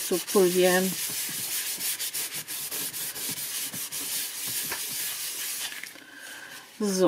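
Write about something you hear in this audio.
A cloth rubs briskly over paper.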